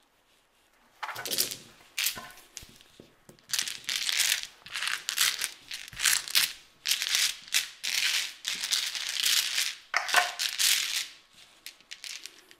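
Clothing rustles and brushes close against the microphone.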